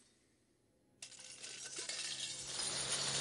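Heaps of coins slide and clink.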